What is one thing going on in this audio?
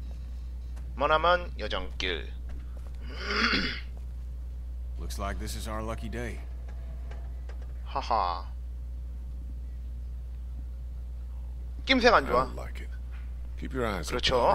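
A man speaks in short, worried phrases, close by.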